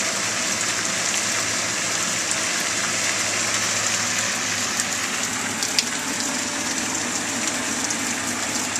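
A fountain splashes steadily into a pond.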